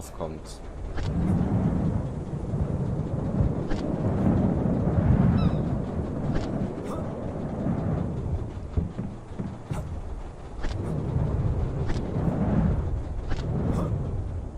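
A pulley whirs along a cable in swelling rushes.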